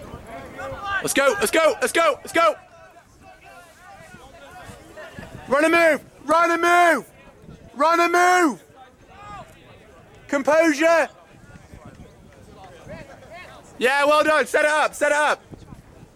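Several voices call out loudly from close by in short bursts.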